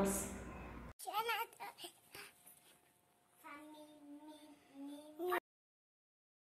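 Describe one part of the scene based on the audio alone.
A little girl speaks and laughs close by.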